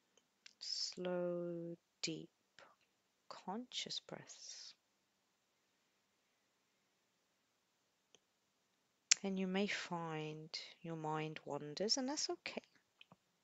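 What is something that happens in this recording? A young woman sings a few drawn-out notes.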